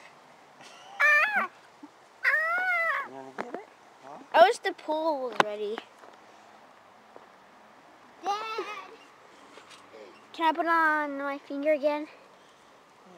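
A young boy talks and squeals excitedly close by.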